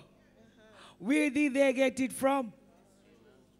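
An elderly woman sings loudly through a microphone.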